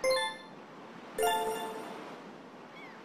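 A short bright chime rings out twice.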